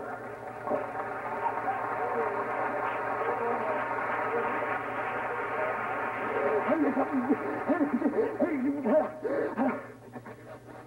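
A chorus of men and women sings together in a large, echoing hall.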